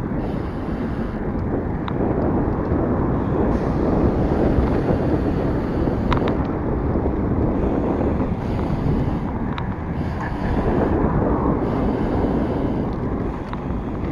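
Bicycle tyres hum on a smooth road.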